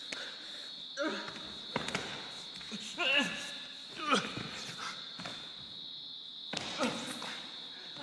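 Bodies thump and slide on a stage floor.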